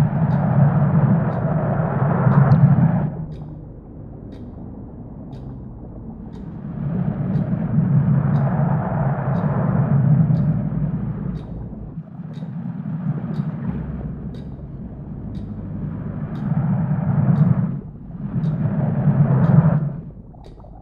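A plastic ball rolls and rumbles across a wooden floor in bursts.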